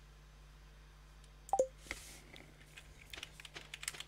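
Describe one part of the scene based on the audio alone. A short game chime sounds as a menu closes.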